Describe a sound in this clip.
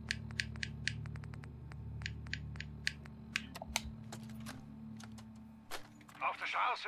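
Short clicks tick quickly from a handheld device.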